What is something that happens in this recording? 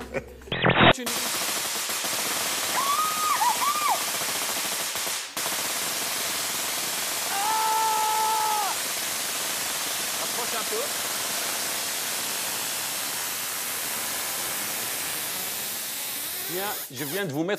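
Electric sparks crackle and hiss loudly and steadily.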